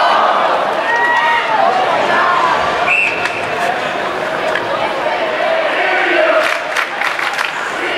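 A crowd cheers and shouts in an echoing ice arena.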